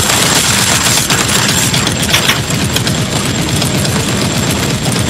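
Rapid gunfire rattles without a break.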